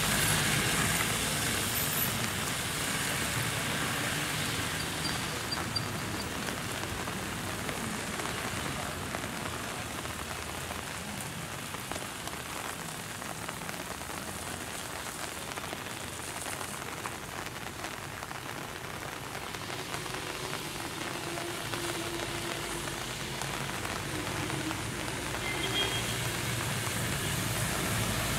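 A bus engine rumbles as the bus climbs a bend.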